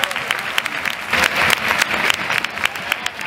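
A crowd of dancers claps along.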